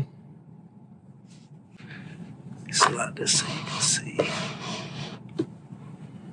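A cloth rubs and wipes against a hard surface.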